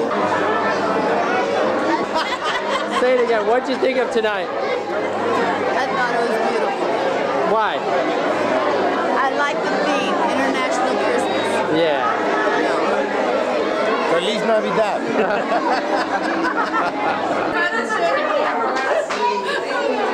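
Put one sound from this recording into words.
A crowd chatters loudly in a busy room.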